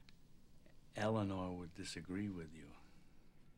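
A second man speaks with animation, close by.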